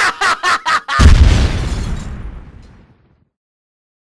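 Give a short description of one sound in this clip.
An explosion booms and fades away.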